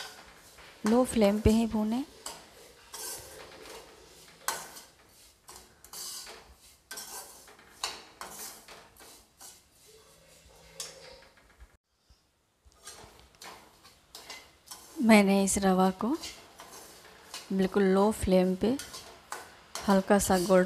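A metal spatula scrapes and stirs in a frying pan.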